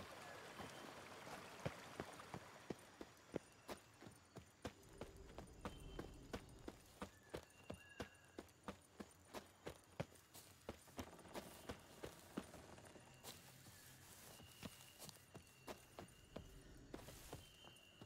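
Footsteps thud steadily on soft ground and leaves.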